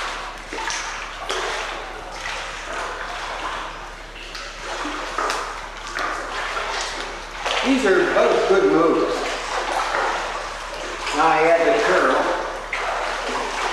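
Water splashes and laps around a wading man.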